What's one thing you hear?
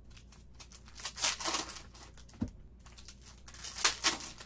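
A plastic card pack crinkles and rustles as hands tear it open.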